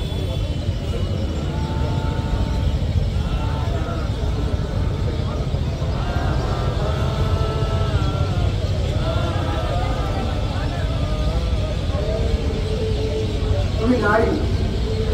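A group of young men and women sing slowly together outdoors.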